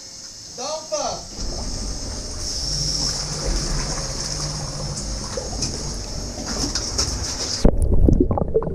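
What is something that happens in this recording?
Water rushes and splashes as it rises around a man.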